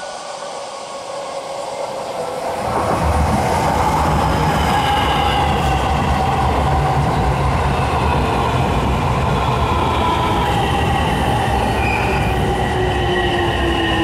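An electric train approaches and rumbles past close by.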